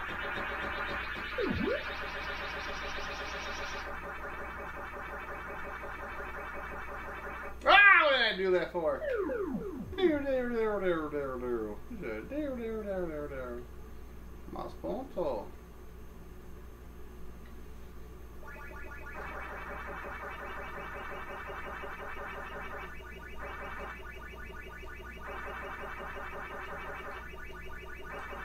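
An arcade game makes a fast buzzing chomping sound.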